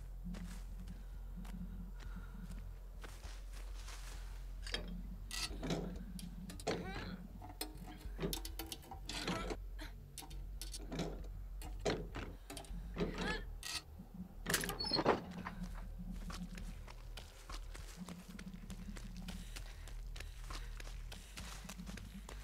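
Footsteps run through rustling grass.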